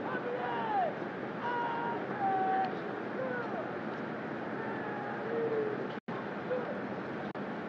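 A man shouts drawn-out drill commands in the distance, outdoors.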